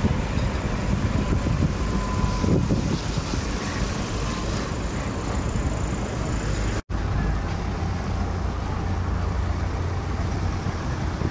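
Car tyres hiss steadily on a wet road.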